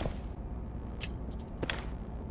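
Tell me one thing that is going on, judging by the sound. A gear inventory opens with a soft rustle and click.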